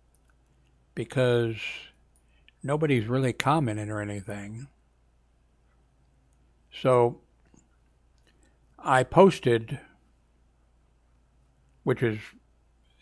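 A middle-aged man speaks calmly into a headset microphone, in short phrases with pauses.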